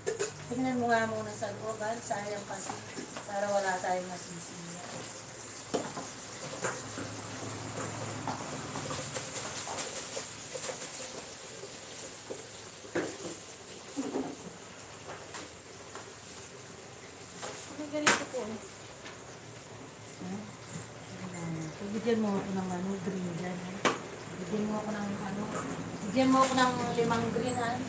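Utensils clink and knock on a counter.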